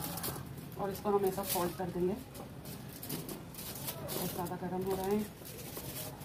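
Aluminium foil crinkles as it is folded.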